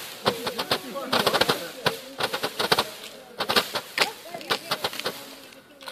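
A firework fountain hisses and sprays sparks.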